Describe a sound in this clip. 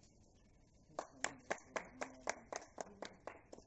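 A small group of people clap their hands.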